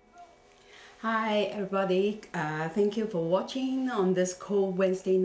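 A middle-aged woman speaks calmly and closely into a microphone.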